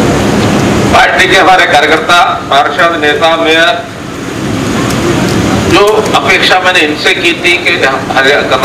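An elderly man speaks forcefully into a microphone over loudspeakers, outdoors.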